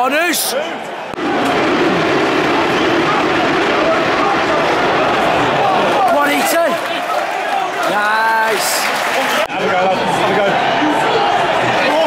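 A large stadium crowd roars and chants loudly all around.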